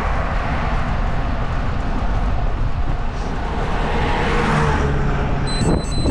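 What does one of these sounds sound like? A car approaches and passes close by.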